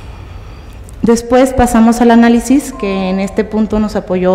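A woman speaks with animation into a microphone, up close.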